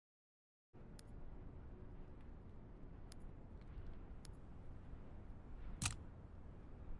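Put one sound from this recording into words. Short menu clicks sound as options are picked in a game.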